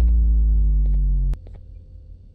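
A wrong-answer buzzer sounds briefly.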